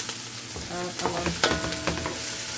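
A wooden spoon stirs and scrapes vegetables in a metal pot.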